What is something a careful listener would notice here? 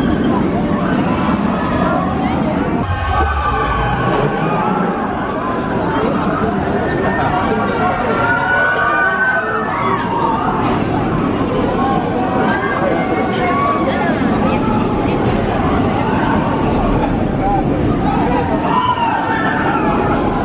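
A roller coaster train roars along its track.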